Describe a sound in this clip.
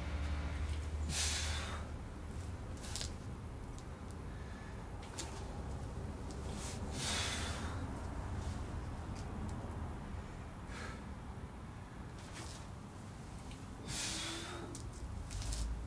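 A man breathes out hard with effort.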